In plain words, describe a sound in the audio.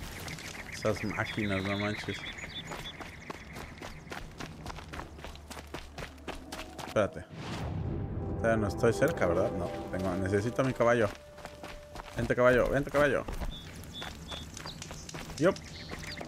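Footsteps run over a dirt path.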